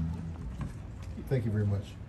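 An elderly man speaks into a microphone.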